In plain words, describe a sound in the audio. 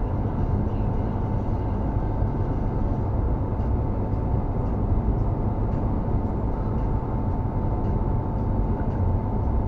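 A car's engine hums steadily from inside the cabin.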